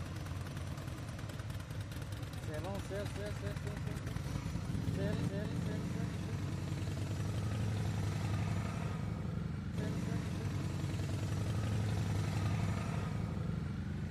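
Motorcycle engines rumble and grow louder as a group of motorcycles rides past close by.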